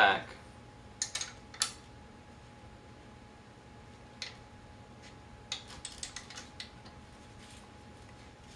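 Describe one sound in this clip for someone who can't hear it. Small metal parts of a wheelchair click and tick under fiddling hands.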